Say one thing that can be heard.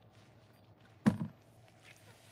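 A sponge drops with a soft thud into a plastic bucket.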